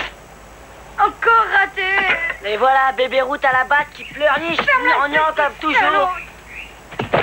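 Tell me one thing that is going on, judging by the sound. A young boy talks with animation.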